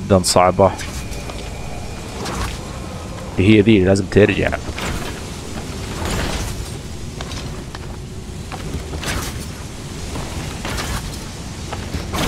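Whooshing dashes sweep past in quick bursts.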